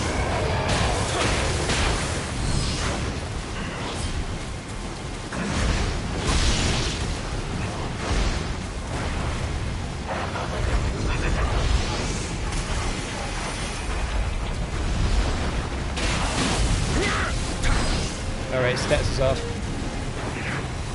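Sword blows clash and strike with sharp impacts.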